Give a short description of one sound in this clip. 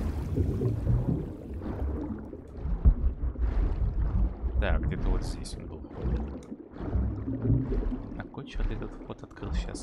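Water swirls and gurgles underwater.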